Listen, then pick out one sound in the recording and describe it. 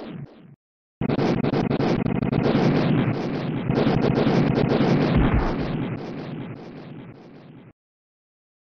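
Loud explosions boom and rumble in a rapid series, then fade away.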